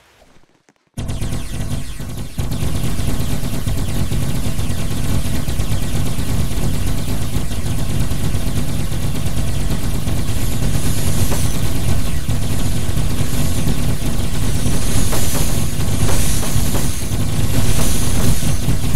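Loud, bass-heavy music plays steadily.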